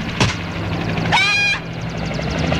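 A woman cries out with a rising voice.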